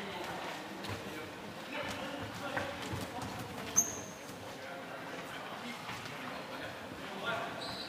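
Players' shoes squeak on a hard floor in a large echoing hall.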